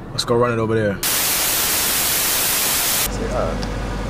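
Loud static hisses steadily, then cuts off.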